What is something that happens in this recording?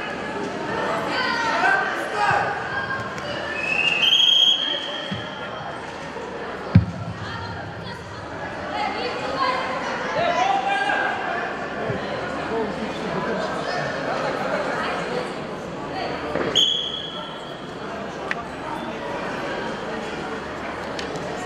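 Children and adults chatter and call out in a large echoing hall.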